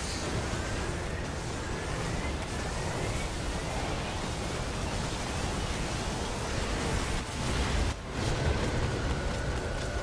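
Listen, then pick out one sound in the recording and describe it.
Loud blasts crackle and boom.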